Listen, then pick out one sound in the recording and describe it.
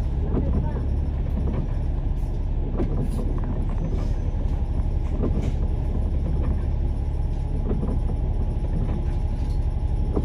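A bus engine rumbles steadily close by.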